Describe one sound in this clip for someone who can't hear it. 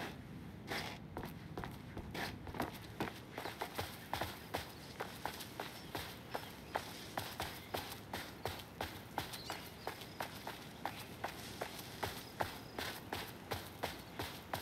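Footsteps crunch steadily over dirt and leaves.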